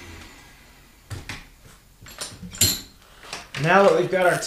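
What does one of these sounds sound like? Metal parts click and clatter.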